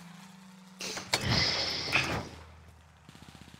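A fire bursts into flames with a whoosh.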